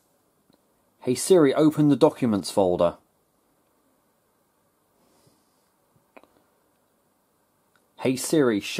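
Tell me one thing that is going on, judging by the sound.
A computer voice speaks calmly through a small laptop speaker.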